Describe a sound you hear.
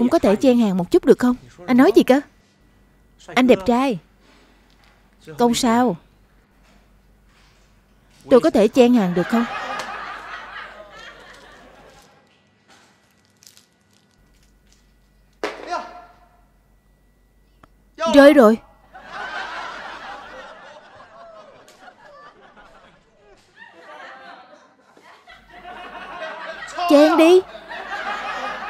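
A young woman speaks nearby in short, playful bursts.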